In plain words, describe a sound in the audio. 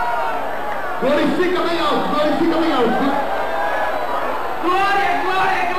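A man speaks loudly and fervently close by.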